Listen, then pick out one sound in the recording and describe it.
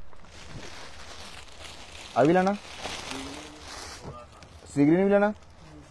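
Cloth rustles softly as hands move it.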